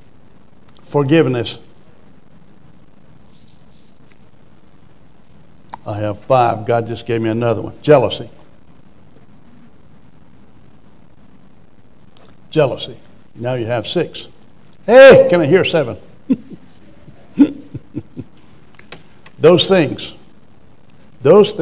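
A middle-aged man speaks into a microphone in bursts with long pauses, calmly and with emphasis.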